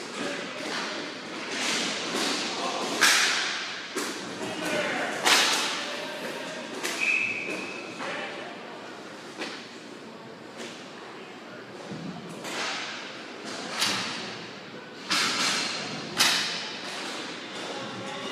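Skate wheels roll and scrape across a hard floor.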